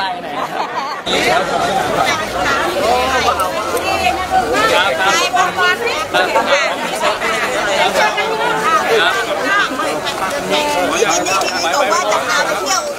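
A crowd of people talks and cheers excitedly.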